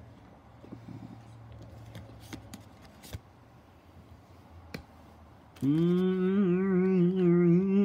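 Playing cards are set down softly on a cloth.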